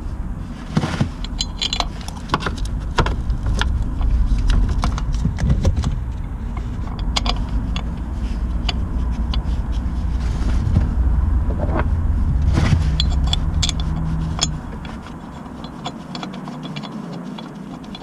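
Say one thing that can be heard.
Metal parts click and clink close by.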